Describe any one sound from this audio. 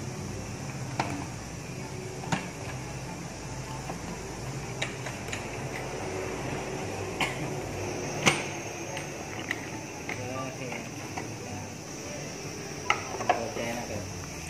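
Plastic clips click and snap as hands work on an engine cover.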